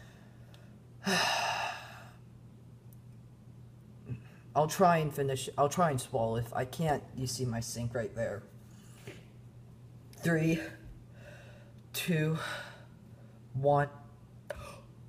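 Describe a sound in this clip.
A teenage boy talks close by, groaning and speaking with strained animation.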